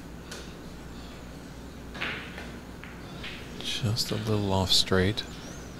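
Footsteps shuffle softly as a player walks around a snooker table.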